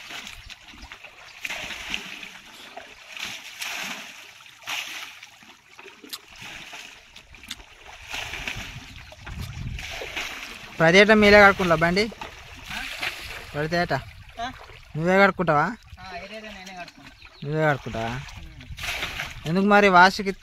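Water splashes and sloshes as a bucket is scooped and poured.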